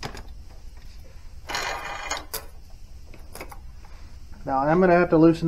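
A metal chain rattles and clinks as it is pulled off a sprocket.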